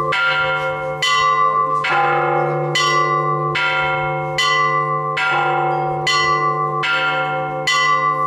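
Church bells ring out in a steady, repeating rhythm, each stroke ringing on.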